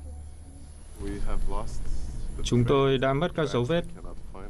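A man speaks calmly close by, outdoors.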